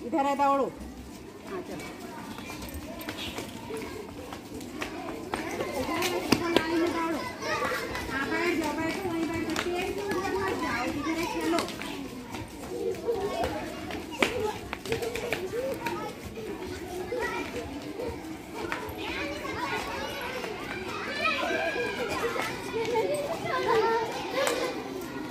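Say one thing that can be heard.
Children shout and chatter outdoors while playing.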